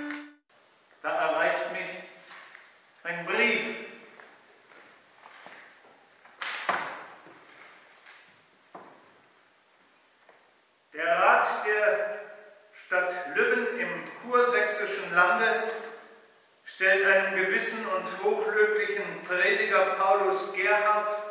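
An elderly man reads aloud calmly in a large echoing hall.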